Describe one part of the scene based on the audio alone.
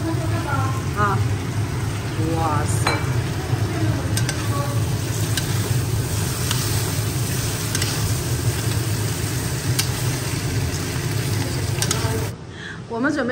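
Food sizzles loudly in a hot pan.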